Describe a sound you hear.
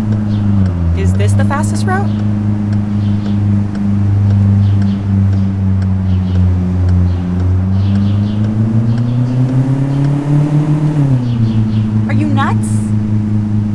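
Tyres squeal briefly on the road.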